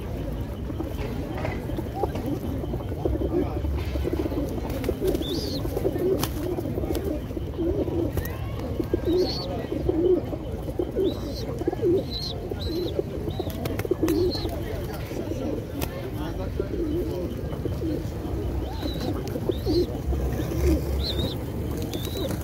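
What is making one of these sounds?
Many pigeons coo in low, throaty murmurs close by.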